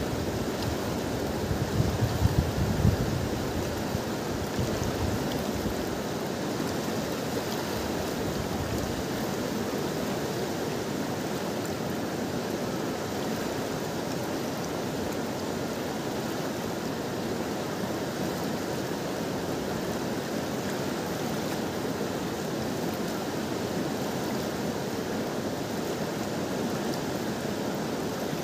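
A wide river rushes steadily over stones close by.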